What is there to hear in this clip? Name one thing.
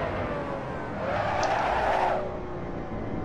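Tyres screech briefly through a corner.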